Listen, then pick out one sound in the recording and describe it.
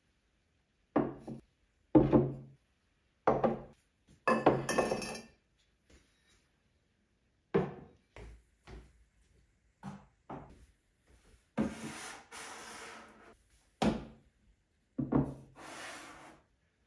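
Ceramic vases clunk down on a hard surface.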